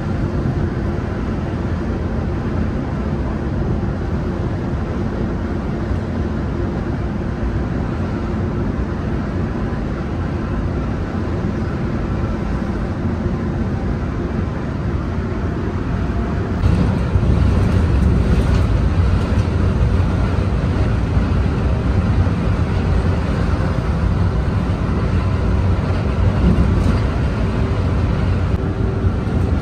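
Tyres roar on the road surface.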